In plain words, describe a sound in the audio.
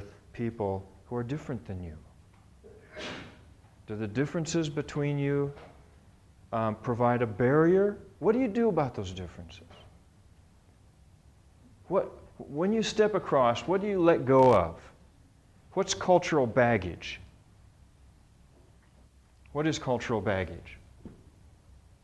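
A middle-aged man speaks with animation, close by, in short bursts with pauses.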